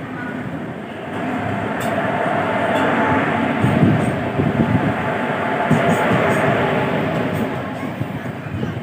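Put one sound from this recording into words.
A train rushes past close by with a loud, rising and fading roar.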